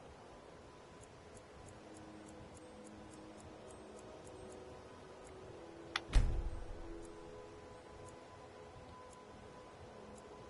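A menu slider ticks softly, over and over.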